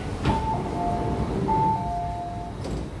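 A train door chime beeps rapidly.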